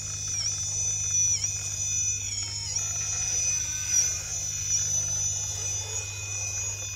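A small electric motor whines steadily, dipping briefly in pitch now and then.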